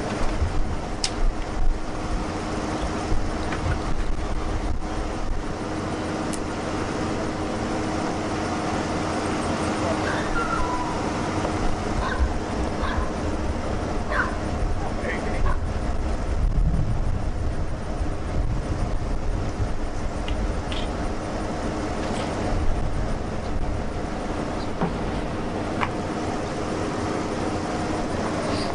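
Wind blows and rumbles steadily across the microphone outdoors.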